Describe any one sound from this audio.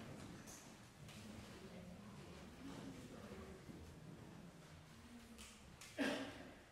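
A piano plays softly in a room.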